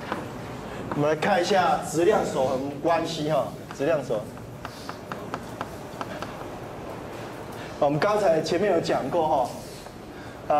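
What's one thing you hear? A man lectures through a microphone.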